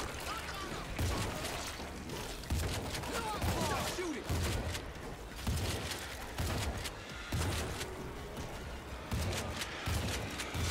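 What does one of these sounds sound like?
A shotgun fires in loud, repeated blasts.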